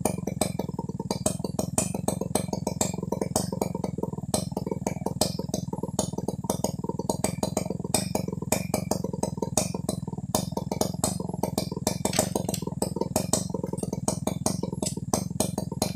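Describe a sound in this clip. A chainsaw engine runs steadily with a rapid, rattling buzz.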